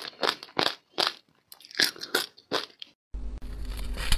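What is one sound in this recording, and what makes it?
A woman crunches ice up close.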